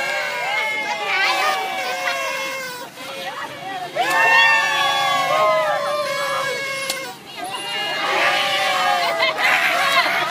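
Young people cheer and shout with excitement.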